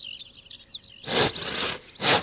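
A saw rasps through wood in loud strokes.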